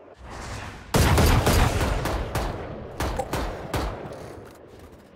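Rapid gunshots ring out in bursts.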